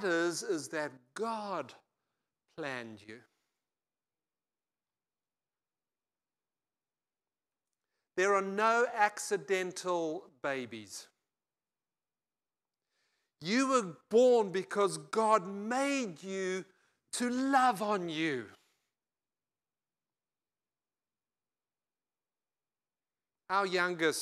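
An older man speaks with animation through a microphone, pausing often.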